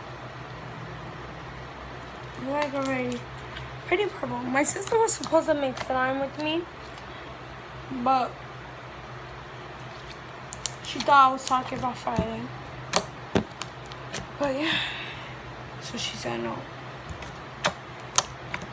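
Slime squishes and pops between hands.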